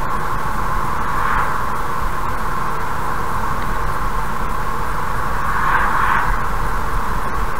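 An oncoming car whooshes past.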